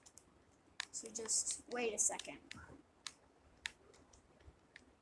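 Short clicking game sound effects play from a speaker.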